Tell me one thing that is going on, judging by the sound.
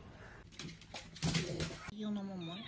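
A dog's paws patter on a wooden floor.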